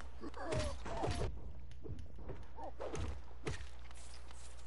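A blade slashes with sharp swishing hits.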